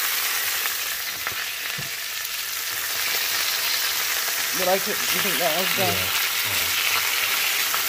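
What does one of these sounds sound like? Meat sizzles in hot oil in a frying pan.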